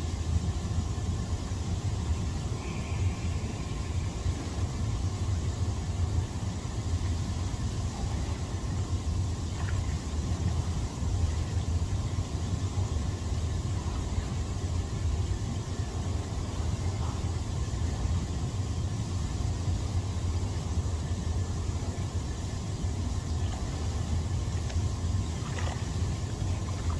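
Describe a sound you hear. Water churns and bubbles steadily in a hot tub, close by.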